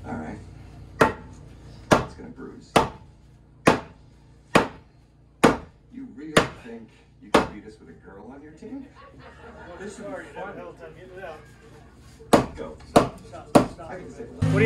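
A hammer strikes wood in sharp, regular blows.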